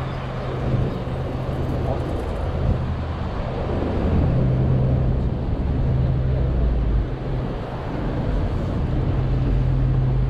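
Traffic rumbles steadily along a city street outdoors.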